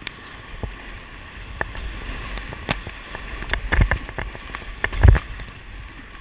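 A kayak paddle splashes and knocks against the water.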